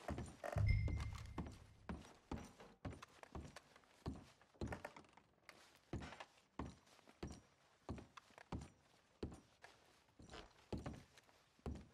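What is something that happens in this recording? Boots thud steadily on a wooden floor.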